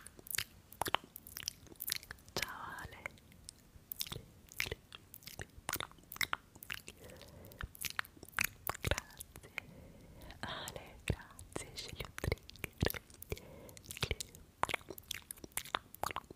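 A lip gloss wand clicks and taps sharply against a close microphone.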